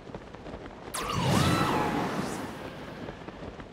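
A strong gust of wind whooshes upward in a swirling burst.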